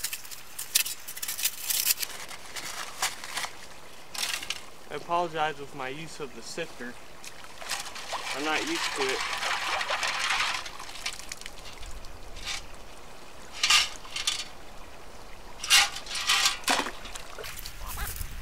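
Water splashes and trickles as a scoop is dipped and poured out in a shallow stream.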